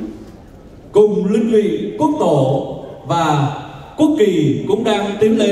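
A man speaks over a loudspeaker with animation, echoing in a large hall.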